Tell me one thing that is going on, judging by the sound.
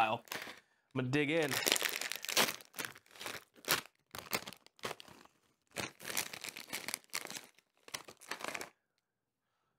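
A plastic snack bag crinkles and rustles as it is torn open.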